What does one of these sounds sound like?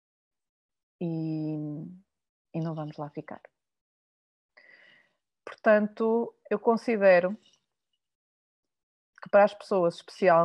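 A middle-aged woman speaks calmly through a microphone, as if on an online call.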